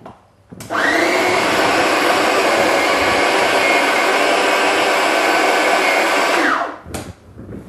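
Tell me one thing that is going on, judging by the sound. A food processor whirs loudly and steadily, then stops.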